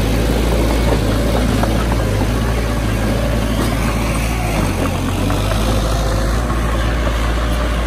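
Loose soil scrapes and pushes under a bulldozer blade.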